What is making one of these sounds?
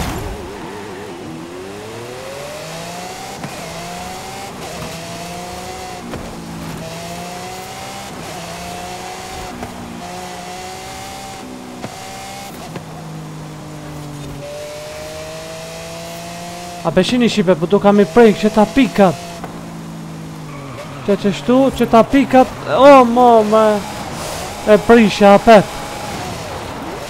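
A racing car engine revs high and shifts up through the gears.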